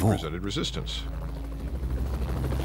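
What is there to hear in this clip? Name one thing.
A helicopter's engine and rotor drone low and steady.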